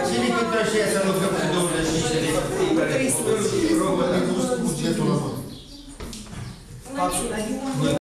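A middle-aged man speaks calmly, heard from across a room.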